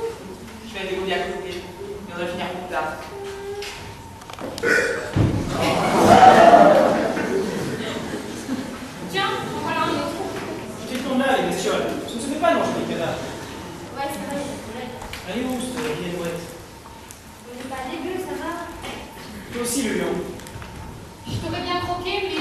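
A young man speaks theatrically in an echoing hall.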